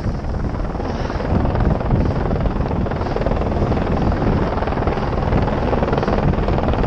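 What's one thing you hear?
Wind rushes loudly past the skier.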